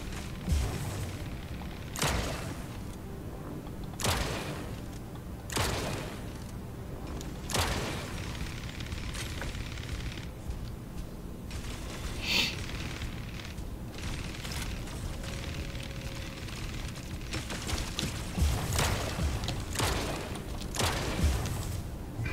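Game weapons fire in loud bursts.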